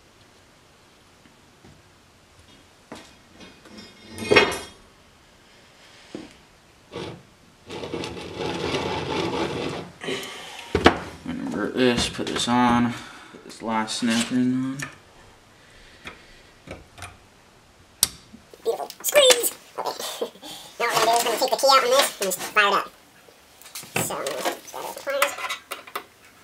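Metal engine parts clink and knock against a hard work surface.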